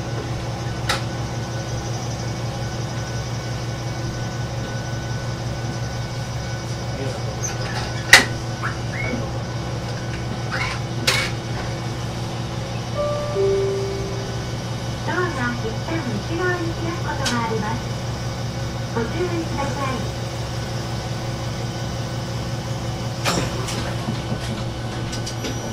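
A train's diesel engine idles with a steady low hum.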